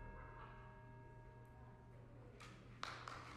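An organ chord rings through a large echoing hall and then stops.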